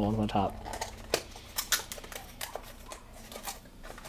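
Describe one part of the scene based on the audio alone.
A cardboard box flap is pulled open.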